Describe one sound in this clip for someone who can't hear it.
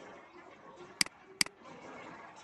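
A computer mouse clicks twice in quick succession.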